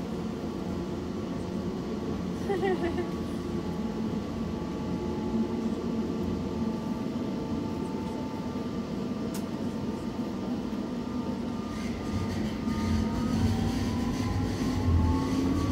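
A subway train rumbles steadily through a tunnel.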